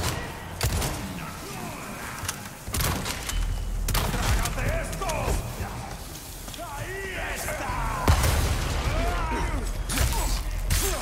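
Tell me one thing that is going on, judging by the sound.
Gunshots crack loudly in an echoing space.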